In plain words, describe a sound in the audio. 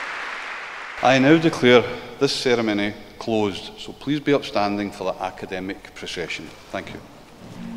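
A man speaks calmly into a microphone over a loudspeaker in a large hall.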